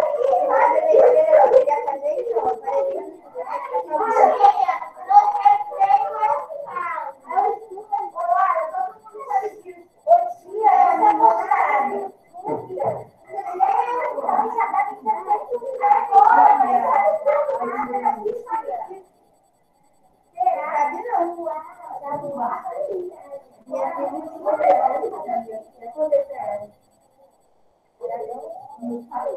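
A woman speaks calmly and steadily through a computer microphone, as on an online call.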